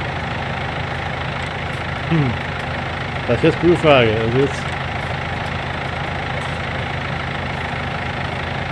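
A loader's engine hums steadily.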